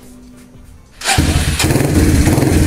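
A motorcycle engine starts up suddenly.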